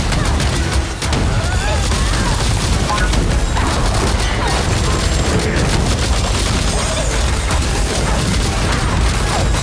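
Magical blasts and explosions crackle and boom in quick succession.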